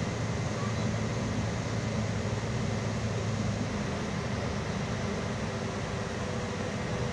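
Tyres rumble over snowy road.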